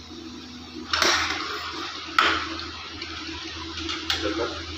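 A metal spoon clinks against a pot.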